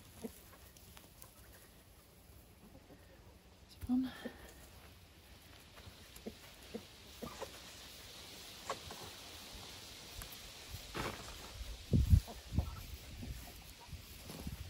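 Hands pat and scrape loose soil.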